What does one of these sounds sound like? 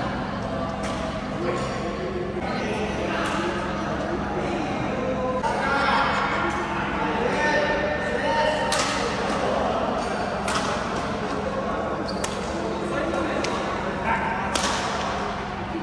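Men talk and call out in an echoing hall.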